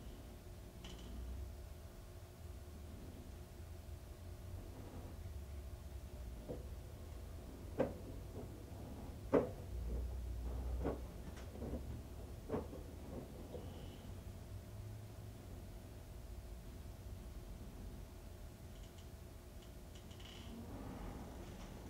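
A washing machine drum turns with a low hum.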